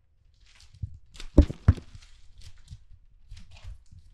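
Paper rustles and flaps.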